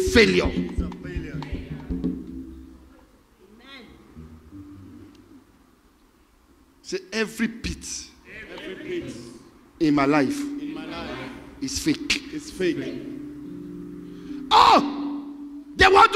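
A man speaks with animation through a microphone and loudspeakers in an echoing hall.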